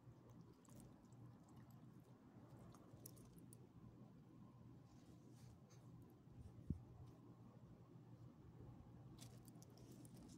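A small dog licks and nibbles at fingers close by.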